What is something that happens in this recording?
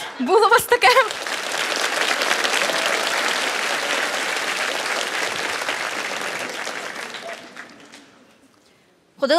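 A large audience applauds and cheers in a big hall.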